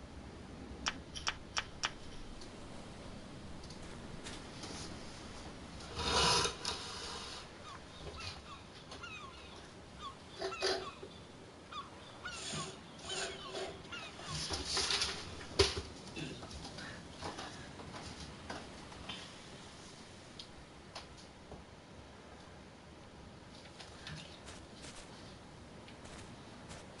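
A light breeze rustles through leaves.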